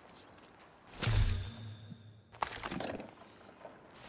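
A body slides heavily into cover with a loud thump and rustle.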